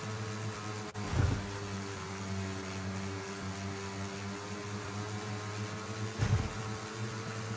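A motorcycle thumps over bumps in the ground.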